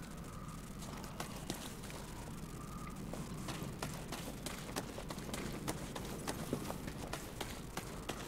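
Footsteps run over grass and stone.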